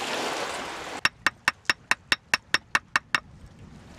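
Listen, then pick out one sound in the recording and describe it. A hatchet taps rapidly against wood.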